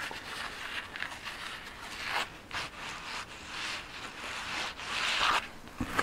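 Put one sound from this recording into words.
Rubber gloves rub and rustle against each other.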